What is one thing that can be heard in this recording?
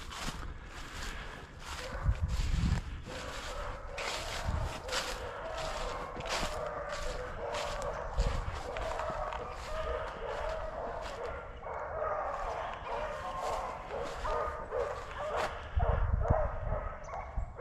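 Dry grass rustles and crunches underfoot as someone walks.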